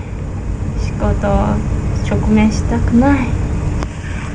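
A second young woman answers softly up close.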